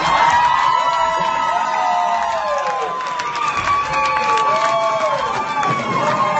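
A crowd claps.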